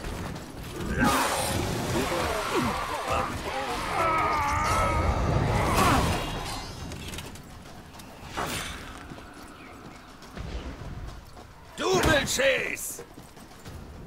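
A gruff man speaks loudly with animation.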